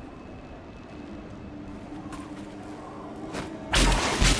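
A magical barrier hums steadily.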